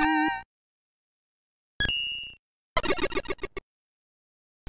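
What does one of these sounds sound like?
Retro video game sound effects bleep and chirp in short bursts.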